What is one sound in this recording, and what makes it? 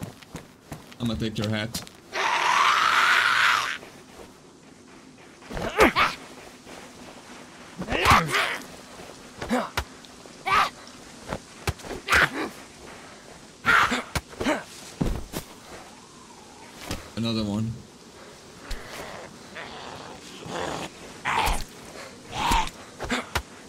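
A creature snarls and groans.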